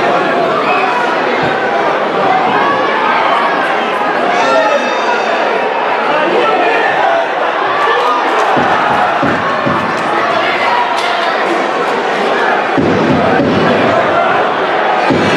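A stadium crowd chants and cheers steadily outdoors.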